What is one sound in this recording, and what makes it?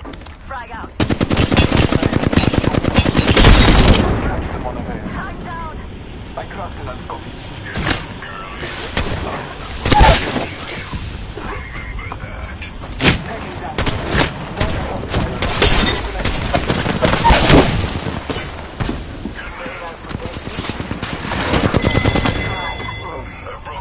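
Guns fire in rapid bursts, with loud shots cracking close by.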